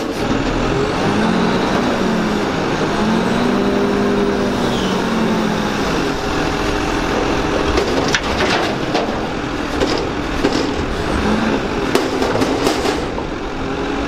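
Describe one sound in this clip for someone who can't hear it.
A garbage truck's hydraulic arms whine as they lift a bin overhead.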